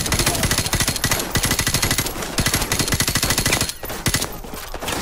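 An automatic rifle fires rapid bursts at close range.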